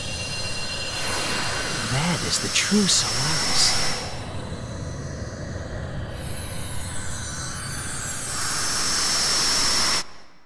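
A deep rushing roar swells and bursts.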